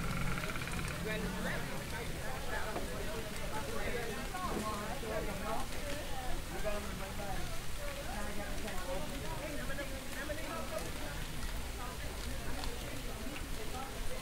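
A few adults chat at a distance outdoors.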